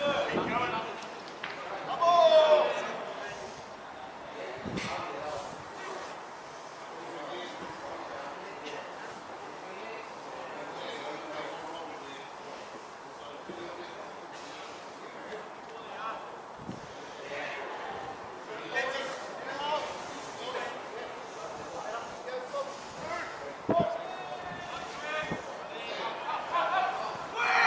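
Players shout to each other across an open pitch outdoors.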